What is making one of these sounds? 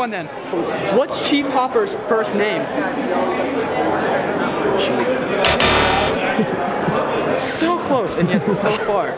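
A young man asks a question into a microphone.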